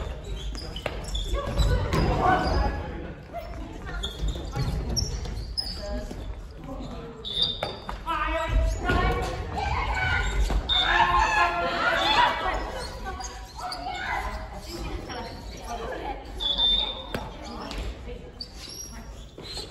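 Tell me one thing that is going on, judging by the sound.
Shuttlecocks are hit with rackets with sharp pops.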